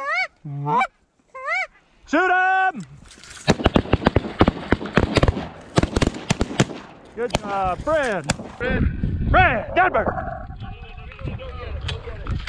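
Many geese honk loudly and close by.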